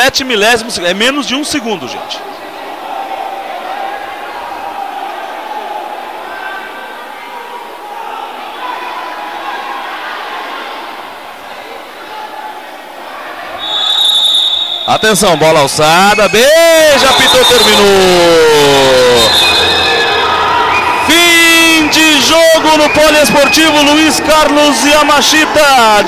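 A crowd murmurs.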